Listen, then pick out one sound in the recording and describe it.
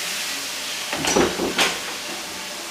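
A door latch clicks as a door opens.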